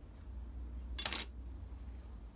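A tool clatters sharply against a table.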